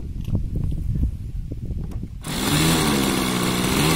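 An electric starter whirs against a small model airplane engine.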